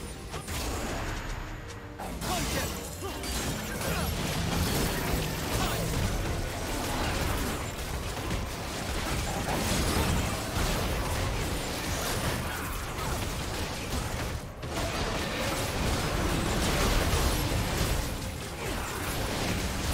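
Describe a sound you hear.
Fantasy battle sound effects of spells and blows clash and burst.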